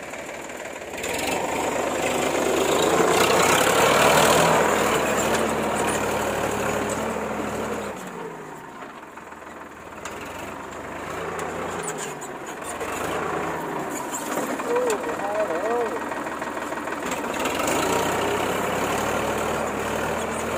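A tractor engine chugs close by.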